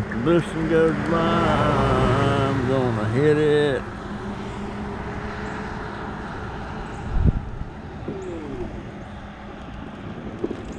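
An electric scooter motor whirs steadily.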